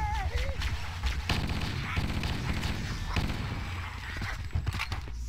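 Rapid gunfire rattles and bursts.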